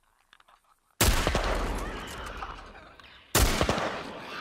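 A rifle shot cracks loudly with a booming echo.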